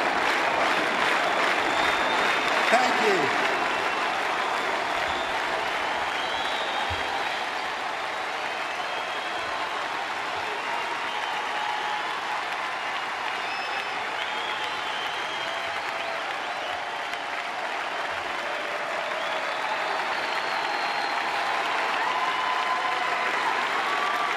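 A large crowd cheers and applauds in a big outdoor stadium.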